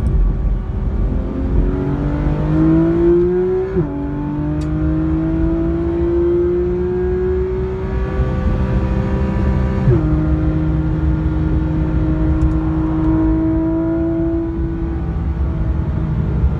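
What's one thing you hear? A car engine roars loudly, climbing in pitch and dropping sharply at each gear change.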